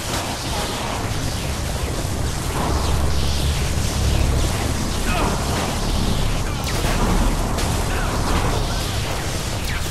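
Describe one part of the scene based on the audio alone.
A loud rushing whoosh roars steadily with a deep rumble.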